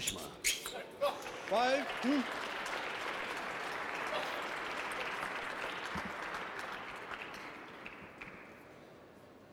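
A crowd applauds and cheers in a large hall, then fades.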